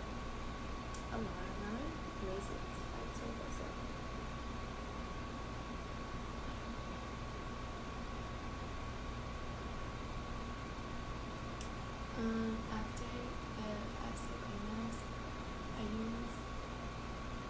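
A young woman speaks softly and close by.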